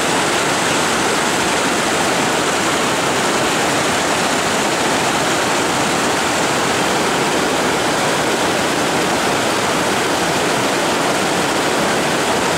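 A river rushes loudly over rocks close by.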